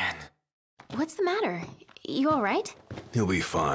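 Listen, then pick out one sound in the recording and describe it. A young woman asks with concern.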